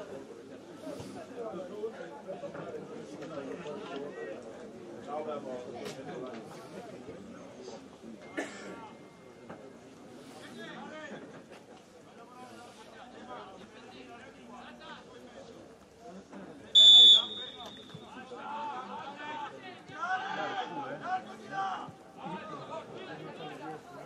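Football players shout and call to each other across an open field.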